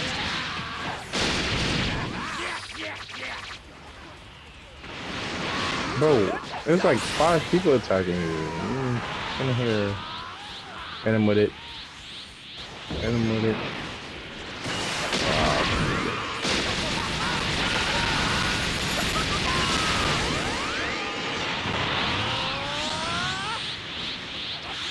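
Energy blasts roar and crackle loudly.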